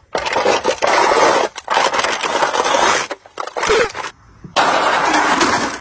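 Plastic cups crunch and crackle as they are crushed underfoot.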